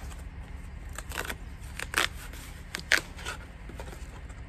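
A small wooden box clicks and knocks in a man's hands.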